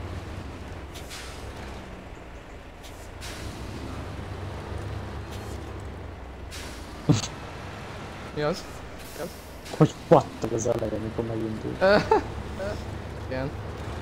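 A heavy truck engine rumbles low and steady.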